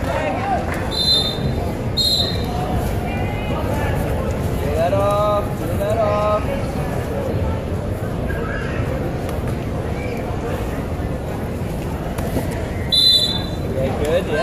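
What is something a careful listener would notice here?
A referee blows short, sharp whistle blasts.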